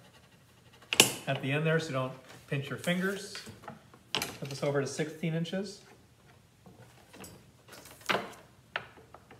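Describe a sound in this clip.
A paper cutter's blade clicks and slides through board.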